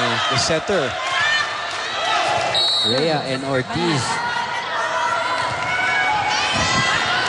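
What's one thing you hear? A large crowd cheers and chatters in an echoing arena.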